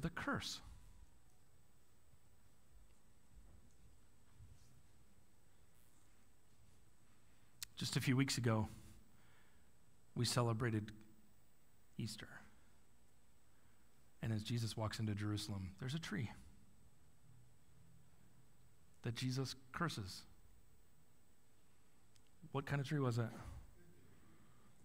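A man speaks calmly through a microphone in a large room, with long pauses.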